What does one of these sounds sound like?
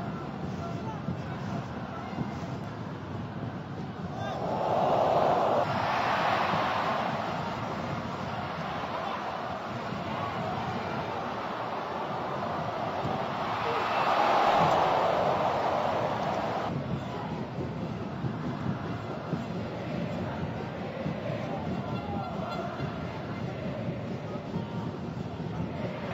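A large stadium crowd roars and cheers, swelling loudly twice.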